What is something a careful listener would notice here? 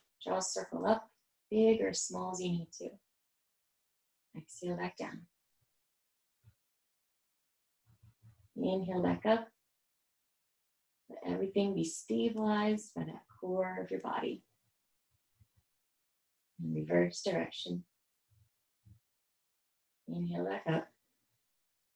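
A young woman speaks calmly, giving instructions, close by.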